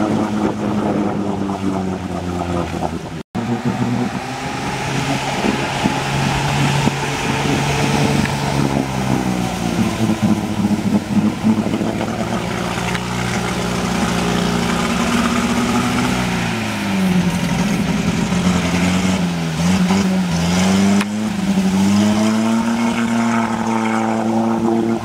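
Deep muddy water churns and splashes around the wheels of an off-road vehicle.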